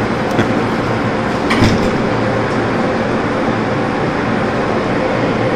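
A machine hums loudly and steadily.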